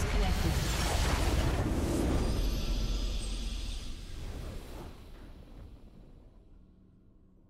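A victory fanfare swells and slowly fades away.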